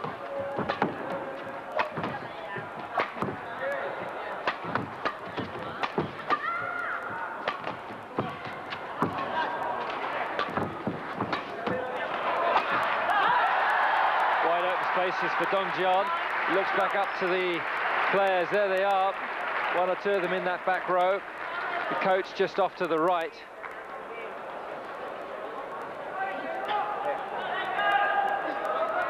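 Rackets strike a shuttlecock with sharp, quick taps in a large echoing hall.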